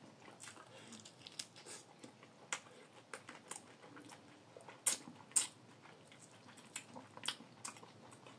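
A man chews food with his mouth close by.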